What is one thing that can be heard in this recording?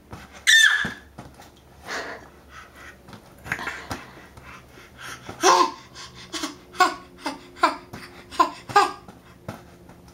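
A small hand pats and squeaks against an inflatable toy.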